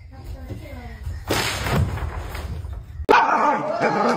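A person bangs on a window pane.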